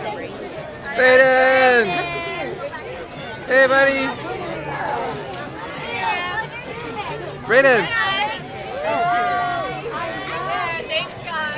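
Children shout and call out loudly close by.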